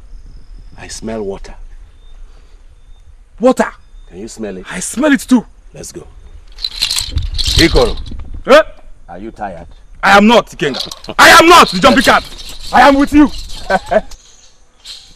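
A man speaks loudly and forcefully nearby.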